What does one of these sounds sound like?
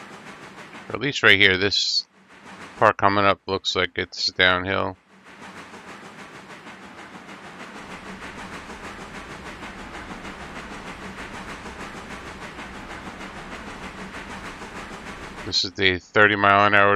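A steam locomotive's whistle blows loudly in several blasts.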